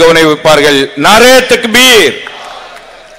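A man shouts loudly into a microphone, his voice booming and echoing through loudspeakers.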